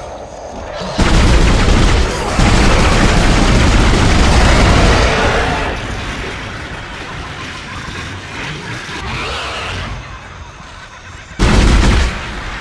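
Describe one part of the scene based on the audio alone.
Loud energy weapon blasts fire in rapid bursts.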